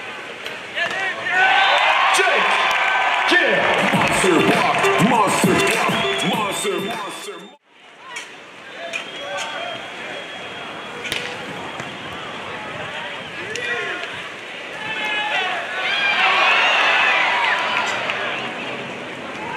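A crowd cheers and applauds outdoors.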